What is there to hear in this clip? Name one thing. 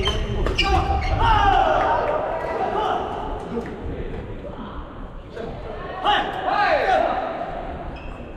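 Sports shoes squeak sharply on a wooden floor.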